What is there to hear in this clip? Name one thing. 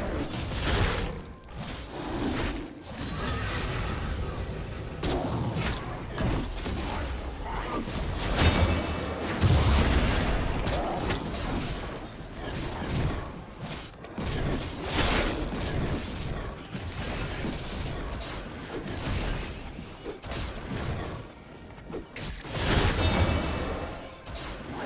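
Video game combat sound effects clash, slash and whoosh.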